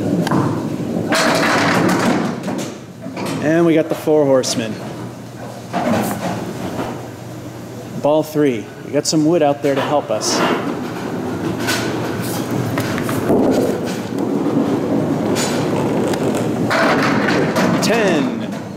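Bowling pins crash and clatter as a ball strikes them.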